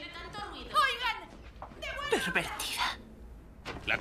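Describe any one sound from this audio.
A young woman cries out close by.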